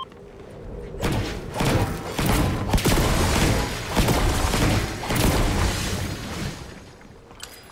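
A pickaxe strikes and smashes wood with loud, crunching blows.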